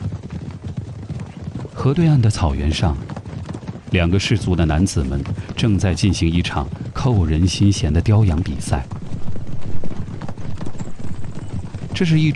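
Horses gallop across hard ground with drumming hooves.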